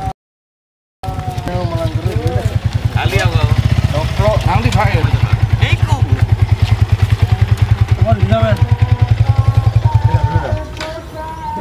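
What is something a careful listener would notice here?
A motorcycle engine runs with a rapid putter.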